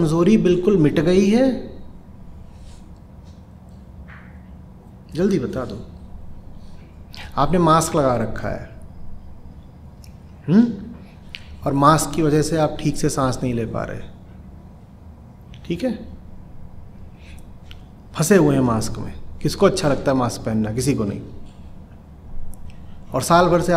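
A man speaks calmly and deliberately into a close microphone, with pauses between phrases.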